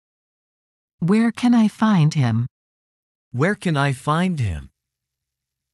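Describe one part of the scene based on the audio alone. A man speaks calmly and close.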